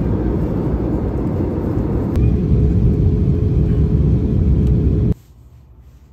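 A jet engine roars steadily from inside an aircraft cabin.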